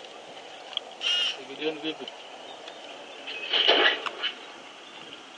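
Lions snarl and growl faintly in the distance while feeding.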